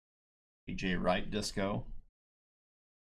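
A man speaks casually into a microphone.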